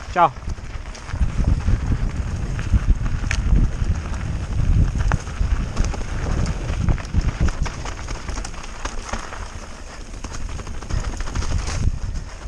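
Bicycle tyres rumble and rattle over a rough dirt trail.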